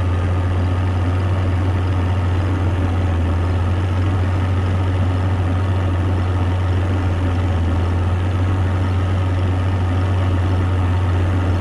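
A half-track's engine drones.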